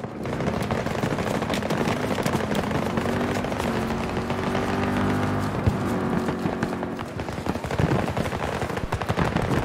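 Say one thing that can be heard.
Gunfire crackles in a distant battle.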